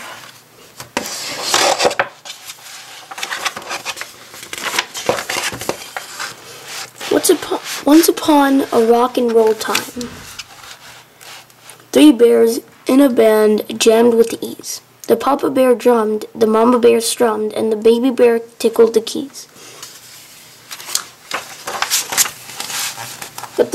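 Paper pages rustle and flap as a book's pages are turned by hand.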